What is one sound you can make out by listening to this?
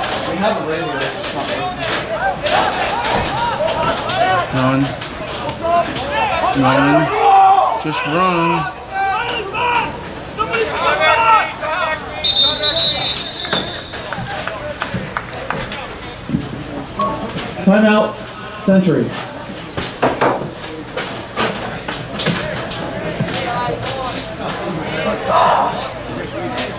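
Young players shout to each other outdoors.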